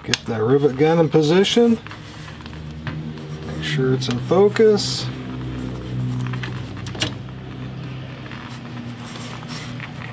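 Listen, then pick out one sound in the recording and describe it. A hand tool's handles creak and click as they are squeezed.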